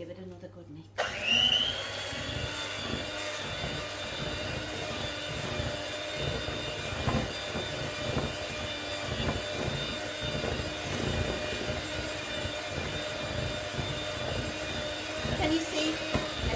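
An electric hand mixer whirs steadily as it beats batter in a bowl.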